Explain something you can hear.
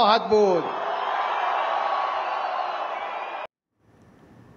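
A large crowd cheers and chants loudly outdoors.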